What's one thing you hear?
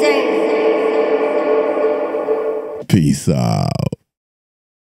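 A man sings into a close microphone, holding long notes.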